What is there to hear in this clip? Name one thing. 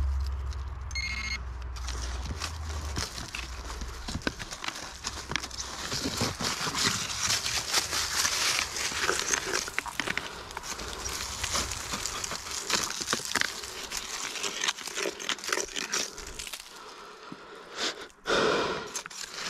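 Footsteps crunch on dry leaves and loose gravel.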